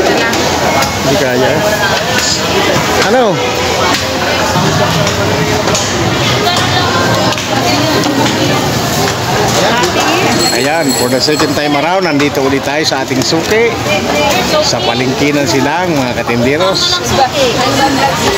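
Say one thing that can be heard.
Crowd chatter fills a busy market.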